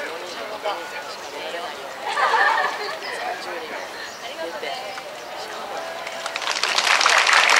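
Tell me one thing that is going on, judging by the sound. A crowd of women chatters and calls out.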